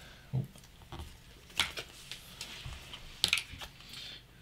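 Game pieces click as they are placed on a table.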